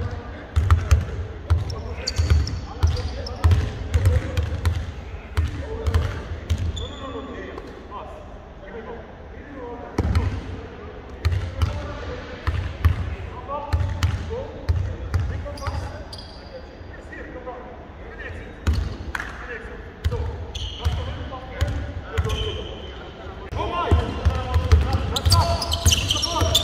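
Basketballs bounce on a wooden court in a large echoing hall.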